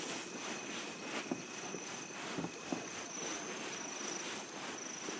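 Soft footsteps crunch on snow.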